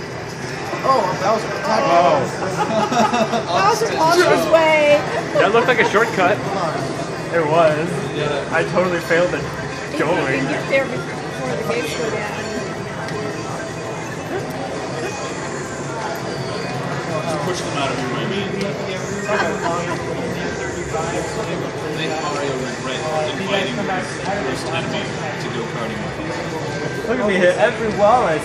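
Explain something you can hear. A racing video game plays music and engine sounds from a loudspeaker.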